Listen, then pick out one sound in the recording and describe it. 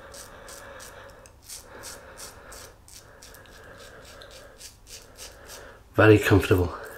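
A safety razor scrapes in short strokes through lathered stubble.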